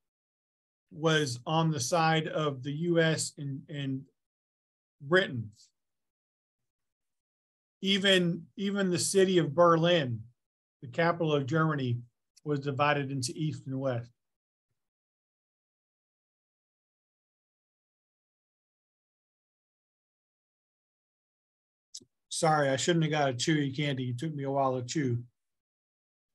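A middle-aged man speaks calmly into a microphone, explaining, with pauses.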